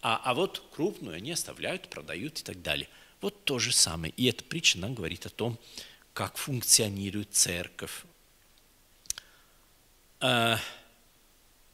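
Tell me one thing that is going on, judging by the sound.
A middle-aged man speaks with animation into a microphone in an echoing hall.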